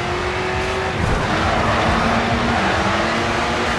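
Tyres squeal on the road through a turn.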